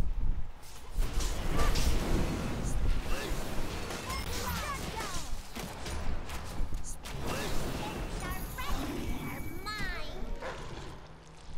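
Magic spells crackle and whoosh in bursts.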